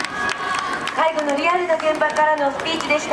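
A young woman speaks animatedly through a microphone and loudspeaker.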